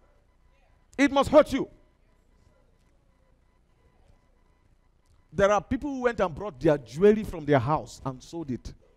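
A man speaks with animation through a headset microphone, pausing between phrases.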